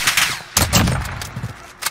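A sniper rifle fires a loud booming shot.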